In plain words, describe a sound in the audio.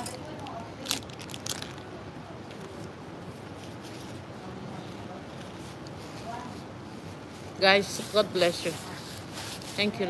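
Paper tissue rustles in a young woman's hands.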